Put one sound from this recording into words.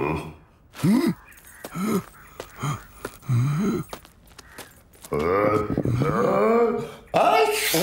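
A man with a gruff cartoonish voice grunts and mutters to himself.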